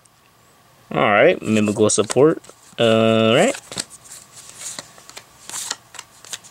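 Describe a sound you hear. Playing cards rustle and tap softly as they are handled.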